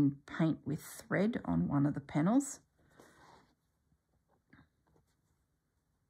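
A needle and thread pull softly through fabric.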